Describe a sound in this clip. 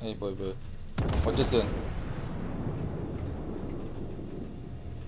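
Heavy naval guns fire with a deep boom that rumbles away.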